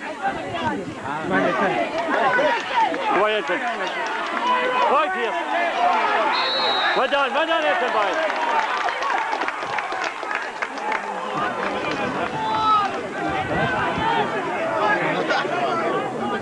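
A crowd of spectators chatters and shouts close by, outdoors.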